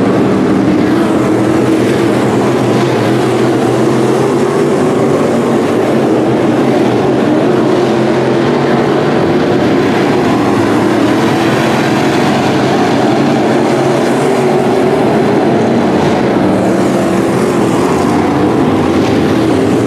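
Race car engines roar loudly as the cars speed around a dirt track.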